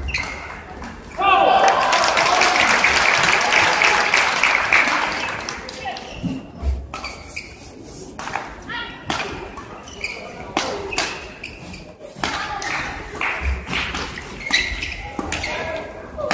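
Shuttlecock hits ring out sharply from rackets in a large echoing hall.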